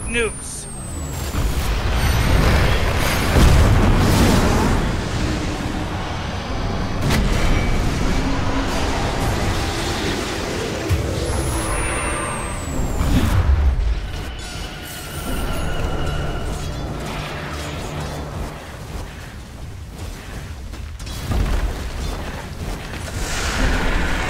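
Game weapons clash and strike in rapid bursts.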